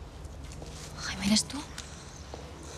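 A man speaks briefly in a low voice, close by.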